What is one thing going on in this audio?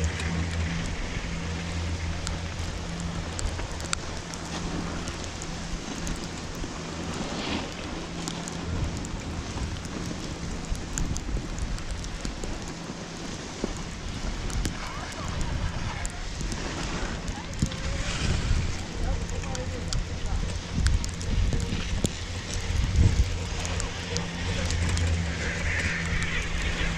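Wind blows against a microphone outdoors.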